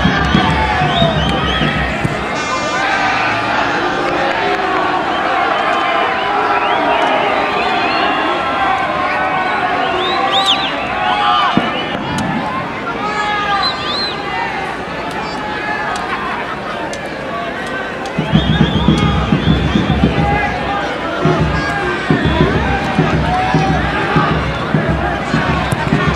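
A large crowd cheers, shouts and whistles outdoors.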